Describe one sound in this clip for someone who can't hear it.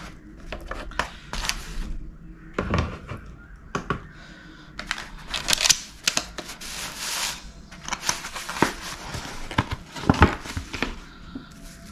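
Paper wrappings rustle and crinkle close by.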